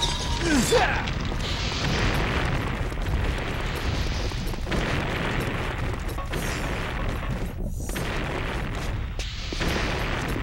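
Lava rumbles and crackles steadily.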